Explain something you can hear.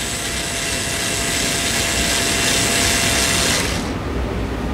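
A power drill whirs steadily, then stops.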